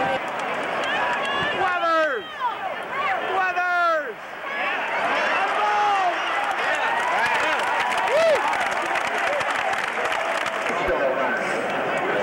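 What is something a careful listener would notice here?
A large stadium crowd cheers and roars outdoors.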